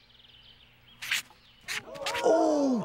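A marker squeaks as it writes.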